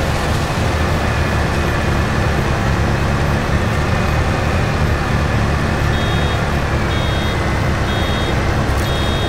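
A diesel tractor engine drones while pulling a round baler.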